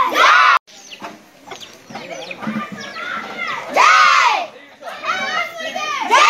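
A crowd of children chants loudly together outdoors.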